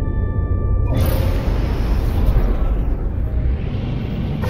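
A spaceship engine roars loudly as the ship lifts off.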